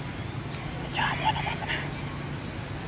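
A monkey lets out a short, high squeal.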